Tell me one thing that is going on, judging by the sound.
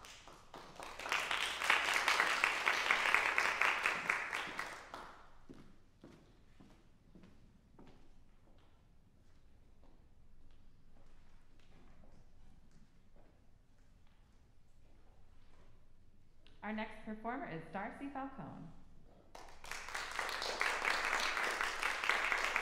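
An audience applauds in a large echoing hall.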